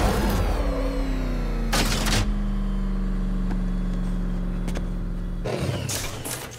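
A vehicle engine hums loudly and winds down.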